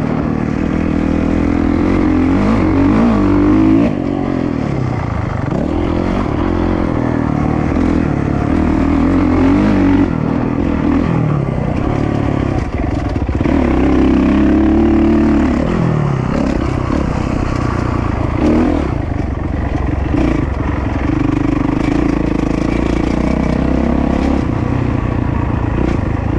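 A dirt bike engine roars close by, revving up and down as it accelerates and shifts gears.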